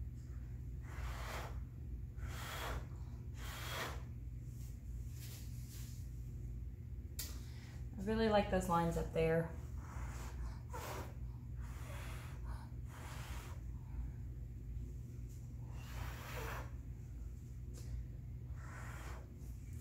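A man blows short, close puffs of breath.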